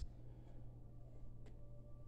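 A man sips a drink from a mug.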